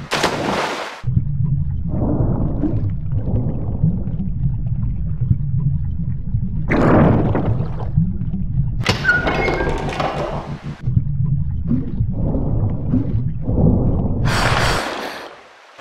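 A low watery rumble of swimming underwater goes on.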